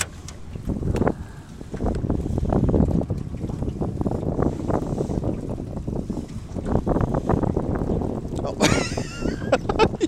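A fishing reel clicks as it is wound.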